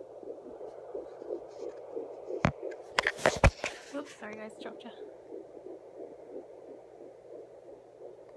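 A baby's heartbeat whooshes in a fast, steady rhythm through a small loudspeaker.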